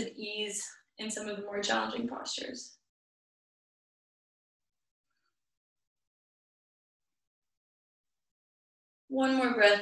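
A young woman speaks calmly, giving instructions close by.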